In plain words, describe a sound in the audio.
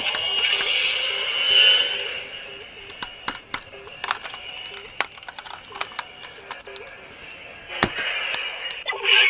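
Plastic parts of a toy click and rattle as hands handle it.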